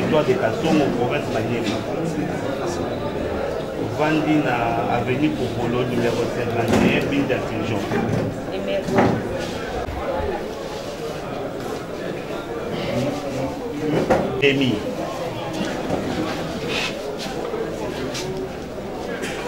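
Several men and women talk over one another in a busy, echoing room.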